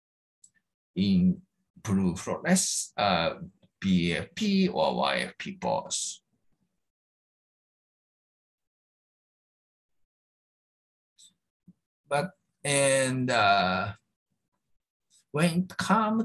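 A man speaks calmly through an online call, pausing between phrases.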